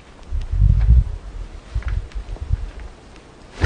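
Footsteps scuff slowly on a hard, gritty floor.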